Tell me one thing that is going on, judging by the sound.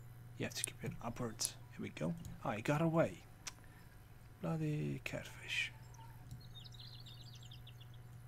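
A fishing reel whirs and clicks as line is wound in.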